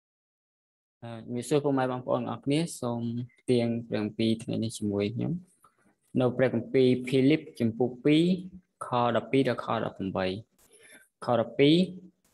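A man reads aloud steadily over an online call.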